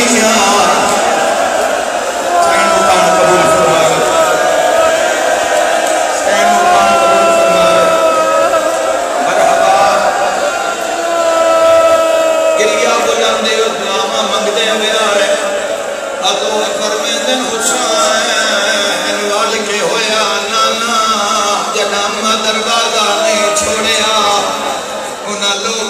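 A crowd of men chant along loudly.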